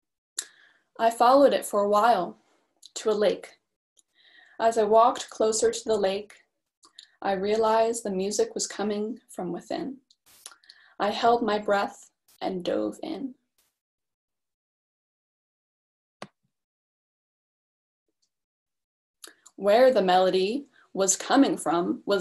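A woman reads aloud calmly through a microphone on an online call.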